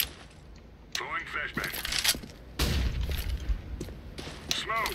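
A rifle fires several short bursts of shots.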